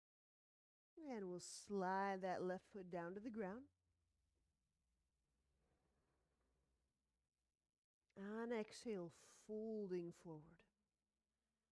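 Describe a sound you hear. A young woman speaks calmly and close by, giving instructions.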